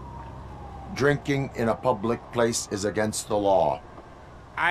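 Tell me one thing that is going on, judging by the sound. A man speaks calmly in a deep, flat, electronic-sounding voice.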